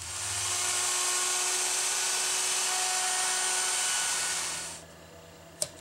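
A wood router whines loudly as it cuts wood, then stops.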